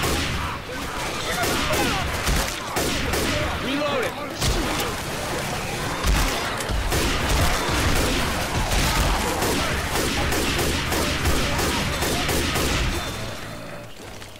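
Rifle shots crack rapidly.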